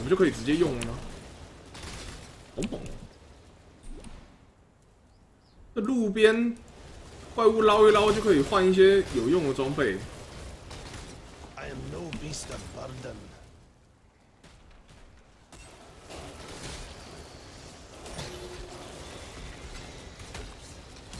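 Weapons clash and spells burst in a video game.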